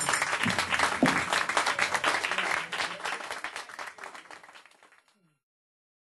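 An audience claps loudly and cheers.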